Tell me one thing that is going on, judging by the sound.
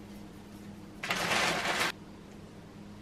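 Plastic wrap crinkles.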